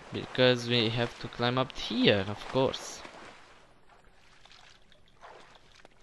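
Water sloshes as someone swims.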